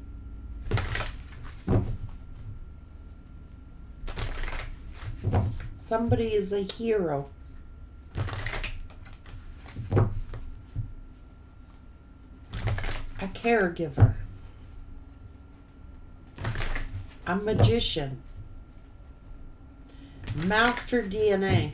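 Playing cards riffle and shuffle in quick bursts.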